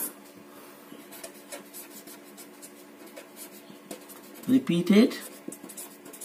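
A pen scratches across paper as it writes.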